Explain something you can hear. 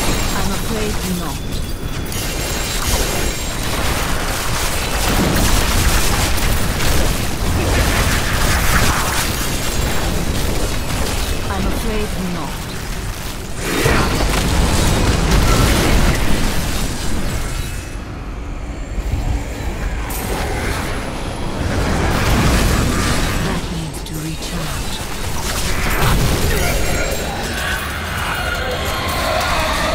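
Weapons hit and slash against monsters over and over.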